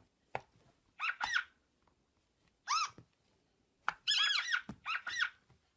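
A tablet game plays short, bright chirping sound effects.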